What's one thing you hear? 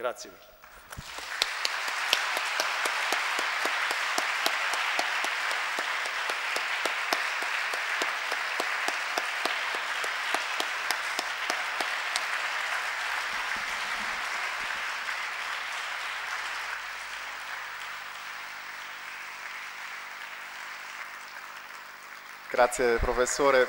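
An audience applauds loudly and steadily, then the applause slowly fades.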